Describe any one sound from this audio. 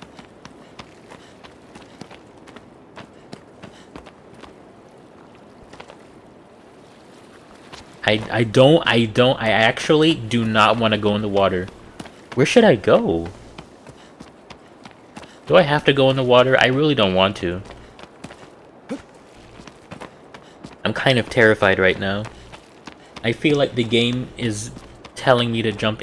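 Footsteps scuff softly on stone.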